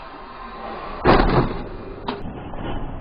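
A car slams head-on into another car with a loud crunching bang.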